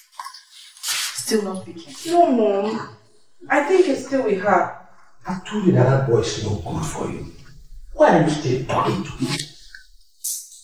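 A middle-aged woman speaks close by.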